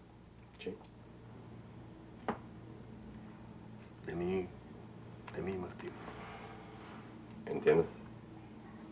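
A middle-aged man speaks quietly close by.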